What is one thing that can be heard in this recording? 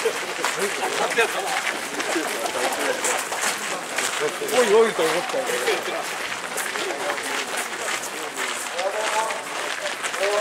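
Many footsteps crunch on gravel.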